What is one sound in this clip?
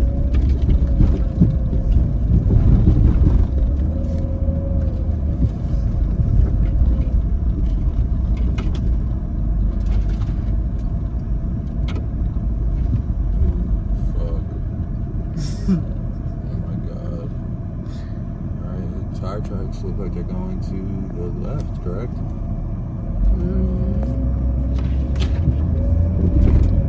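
A vehicle bumps and rattles over ruts.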